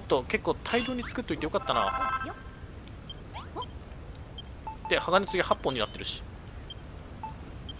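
Short electronic menu blips sound as menus open and change.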